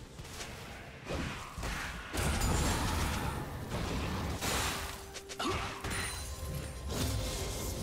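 Spell blasts and hits crackle and thump in a busy fight.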